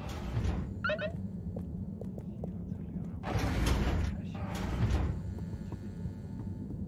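Footsteps thud on stairs and a hard floor.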